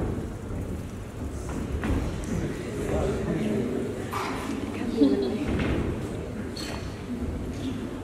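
A bicycle rolls across a wooden stage.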